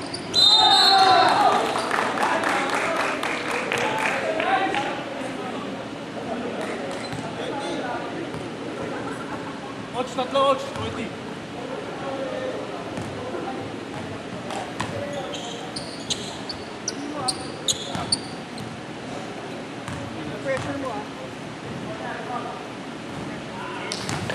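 Sneakers squeak sharply on a wooden court, echoing in a large hall.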